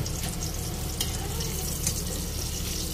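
Metal tongs clink against a pan.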